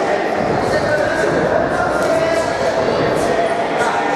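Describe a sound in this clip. Gloved punches thud against a boxer.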